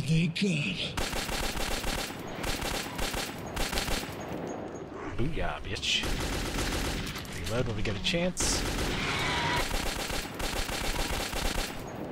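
A rifle fires rapid bursts of gunshots.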